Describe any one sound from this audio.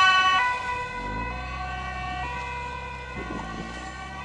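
An ambulance engine rumbles as it drives past.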